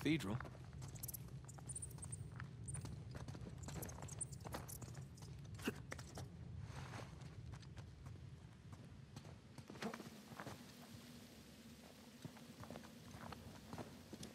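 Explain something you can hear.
Footsteps scuff and tap on a stone floor.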